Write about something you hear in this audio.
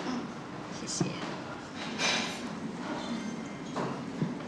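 A glass clinks on a tray.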